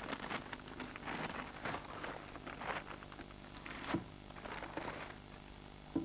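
Paper crinkles and rustles as it is torn away.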